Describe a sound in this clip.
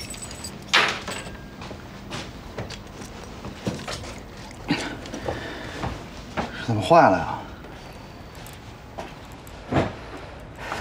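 A man clatters things with his hands.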